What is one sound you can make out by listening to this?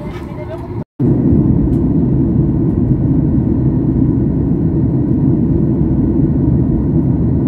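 A steady low roar fills a jet airliner cabin in flight.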